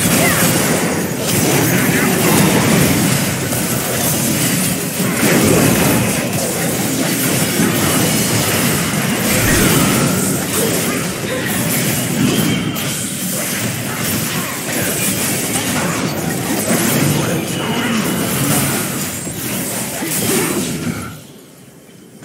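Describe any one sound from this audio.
Game combat effects crackle, clash and burst in quick succession.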